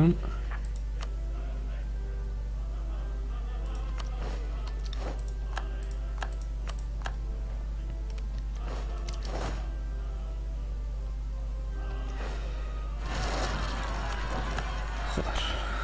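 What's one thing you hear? Interface clicks sound now and then.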